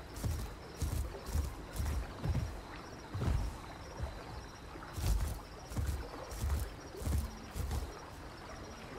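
A large animal's heavy footsteps thud on soft ground at a brisk pace.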